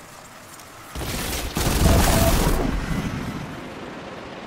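Explosions burst loudly.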